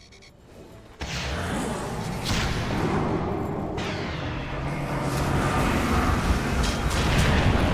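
Magic blasts whoosh and crackle in a fierce fight.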